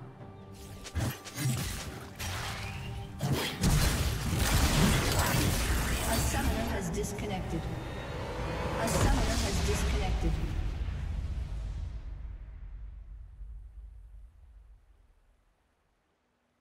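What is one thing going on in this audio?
Game spells crackle and blast in combat.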